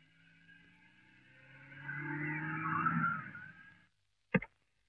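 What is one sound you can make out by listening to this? A car drives up slowly and stops.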